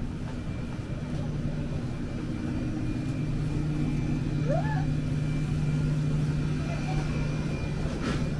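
Refrigerated cases hum steadily nearby.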